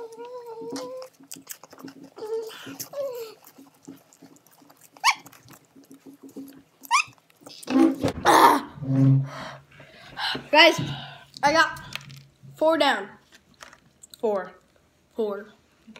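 A second boy talks and laughs close by.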